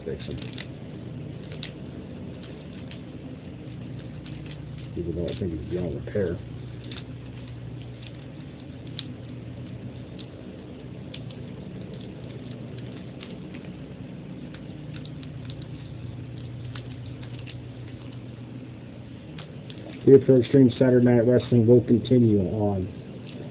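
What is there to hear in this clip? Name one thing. Small plastic parts click softly in someone's hands.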